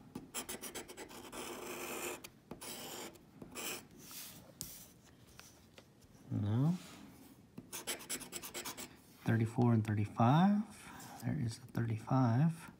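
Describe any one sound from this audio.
A scraper scratches briskly across a card in rapid strokes.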